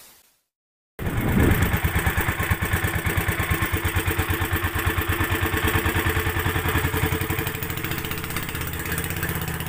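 A boat engine chugs steadily.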